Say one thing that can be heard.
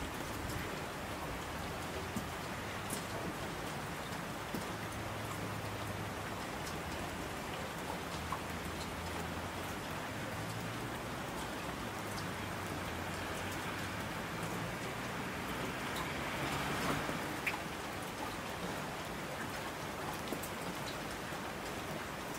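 Thunder rumbles low in the distance.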